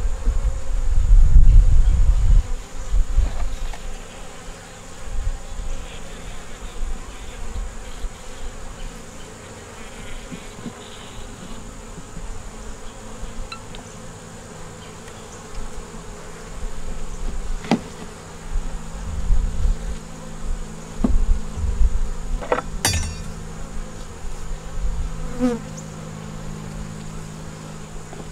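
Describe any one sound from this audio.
Honeybees buzz in an open hive.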